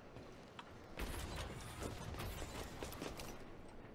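Hands and boots scrape and thump while climbing a metal wall.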